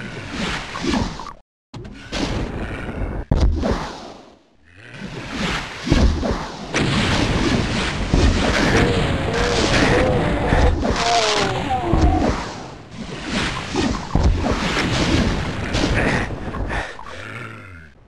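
A shotgun fires in loud blasts, again and again.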